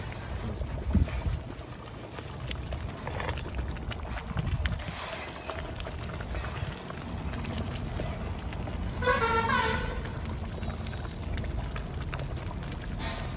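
A metal ladle stirs noodles in broth in a metal pot.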